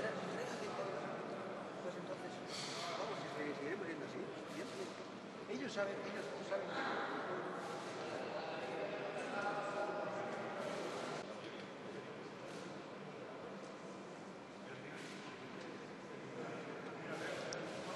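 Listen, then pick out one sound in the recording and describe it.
Men's voices murmur quietly in a large echoing hall.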